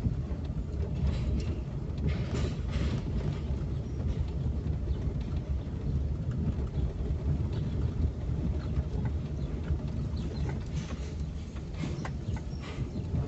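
A car engine hums steadily from inside the car as it drives slowly.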